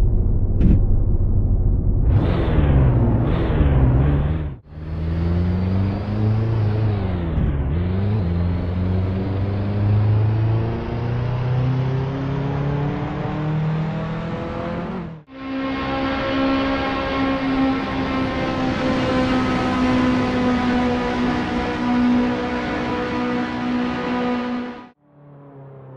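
A sports car engine revs loudly and roars as the car speeds away.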